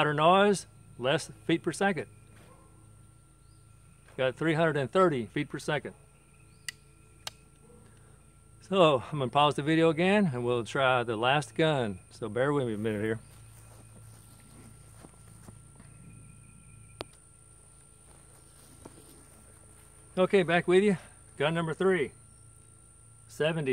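An older man talks calmly close by, outdoors.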